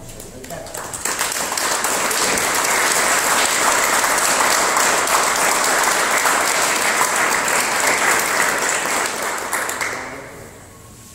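A small audience applauds loudly.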